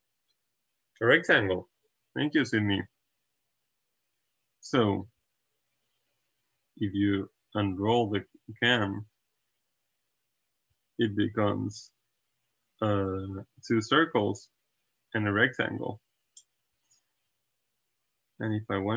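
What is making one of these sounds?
A young man speaks calmly into a close microphone, explaining in short phrases with pauses.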